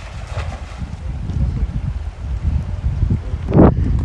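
River water rushes and splashes.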